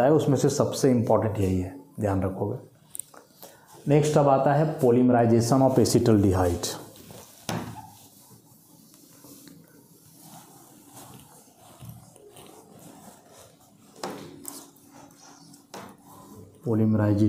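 A man speaks calmly and steadily, close by.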